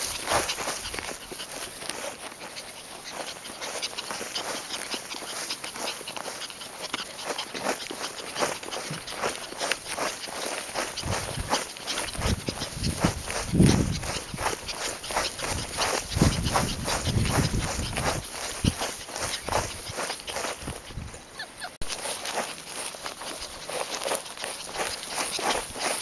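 A small dog pants quickly.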